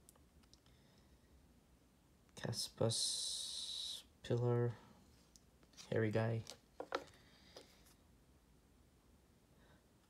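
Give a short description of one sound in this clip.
Trading cards slide and rustle between hands.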